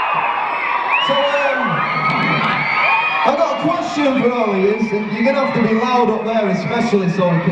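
A young man speaks with animation into a microphone, heard through loudspeakers in a large hall.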